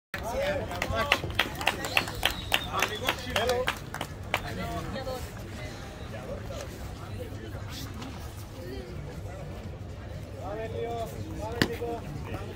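A man nearby shouts encouragement loudly.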